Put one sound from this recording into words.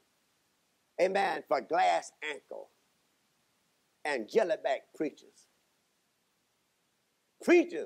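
A man speaks slowly and expressively into a microphone, with pauses between phrases.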